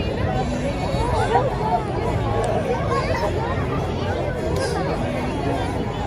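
A large crowd of men and women chatter and call out all around, outdoors.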